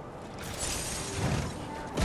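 Electric crackling buzzes briefly.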